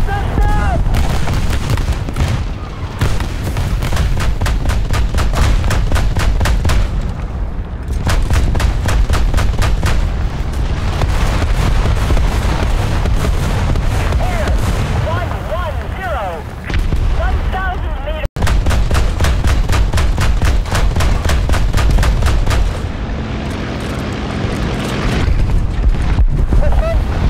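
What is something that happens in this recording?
An anti-aircraft autocannon fires rapid bursts.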